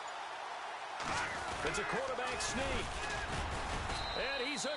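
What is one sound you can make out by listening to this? Football players collide in a tackle with heavy thuds.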